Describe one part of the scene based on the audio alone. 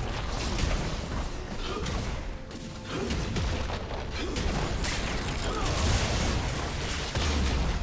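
Video game spells blast and crackle in a busy fight.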